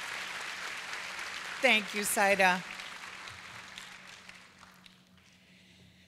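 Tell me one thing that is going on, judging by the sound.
An audience applauds in a large hall, and the clapping fades away.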